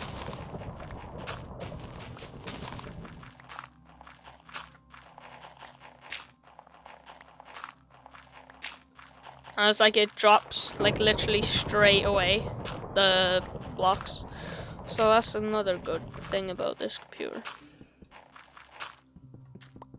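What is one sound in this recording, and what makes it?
Dirt crunches softly, again and again, as it is dug away.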